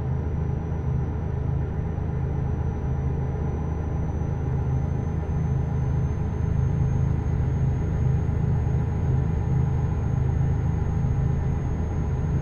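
A truck engine rumbles steadily as it drives along a road.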